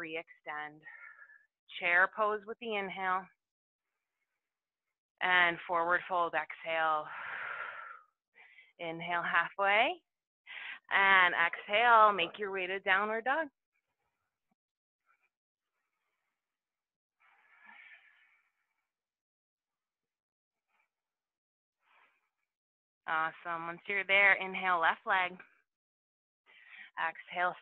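A woman talks calmly, giving instructions close to a microphone.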